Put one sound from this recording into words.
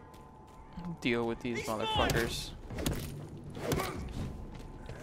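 Blows land in a scuffle, with sharp thuds.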